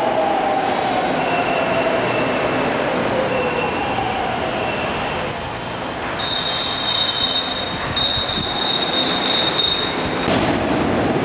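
A subway train rumbles and squeals along the platform.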